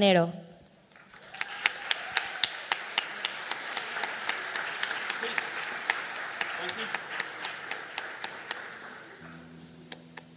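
An audience claps and cheers.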